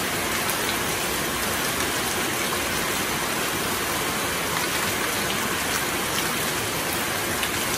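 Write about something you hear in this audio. Raindrops drum on a metal roof.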